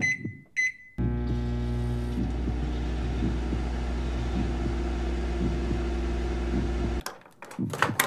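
A microwave hums steadily while it runs.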